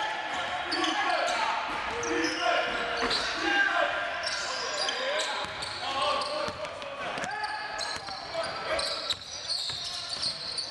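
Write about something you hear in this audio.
A crowd murmurs and calls out in the background.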